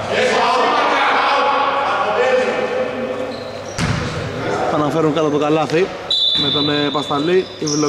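Men shout and call out across a large echoing gym.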